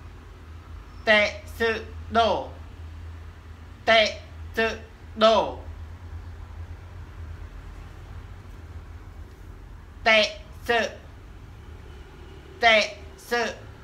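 A young man pronounces short words slowly and clearly, close by.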